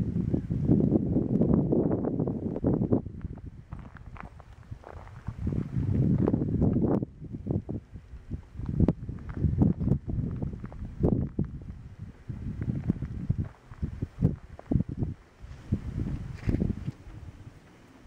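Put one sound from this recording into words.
Wind gusts loudly outdoors, buffeting the microphone in bursts, then dies down.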